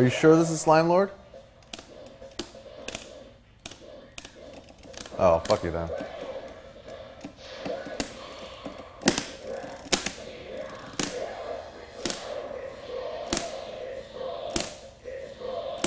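Arcade buttons clack under quick presses.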